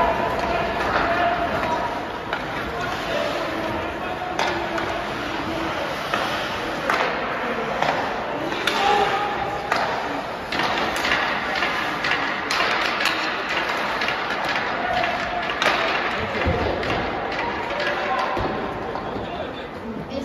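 Skates scrape and hiss across the ice in a large echoing arena.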